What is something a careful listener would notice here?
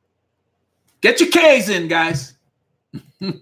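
A man laughs loudly over an online call.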